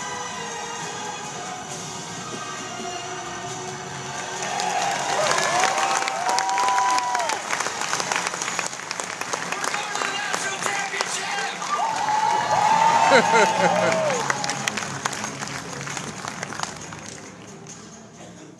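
A large crowd cheers and whistles loudly in an echoing hall.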